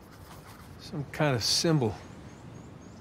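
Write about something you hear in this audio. A man speaks calmly, thinking aloud.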